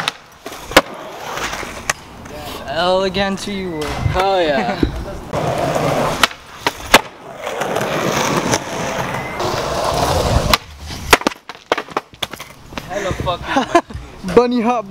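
Skateboard wheels roll over concrete.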